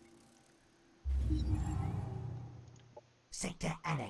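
A deep, booming game chime sounds and slowly fades.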